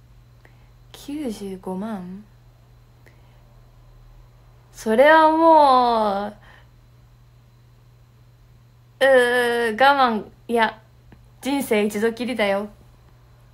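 A young woman talks close to a microphone in a lively, friendly way.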